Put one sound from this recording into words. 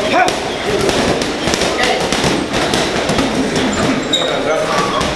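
Gloved punches thud against a heavy punching bag.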